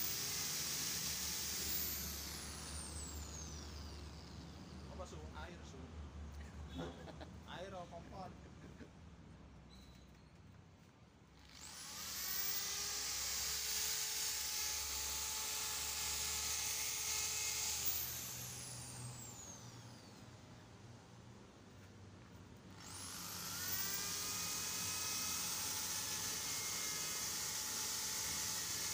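An electric polisher whirs loudly, spinning up and winding down several times.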